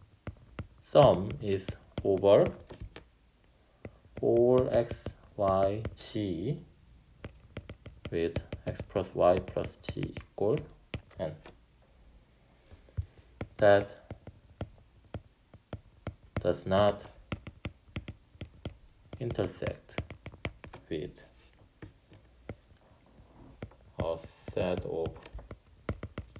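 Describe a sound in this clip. A stylus taps and scratches on a glass tablet.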